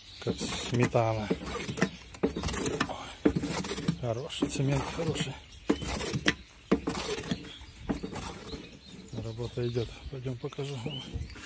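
A power mixer churns wet mortar with a sloppy, scraping sound.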